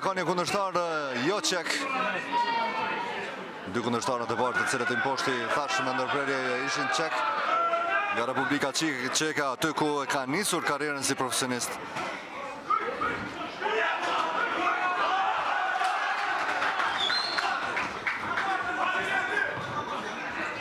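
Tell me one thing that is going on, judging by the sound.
Spectators shout and cheer loudly.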